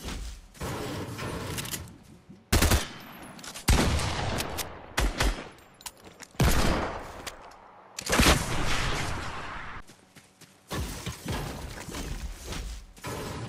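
A pickaxe strikes rock with sharp knocks.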